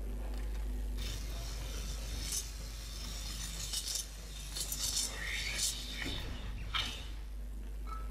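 A man speaks with animation into a nearby microphone.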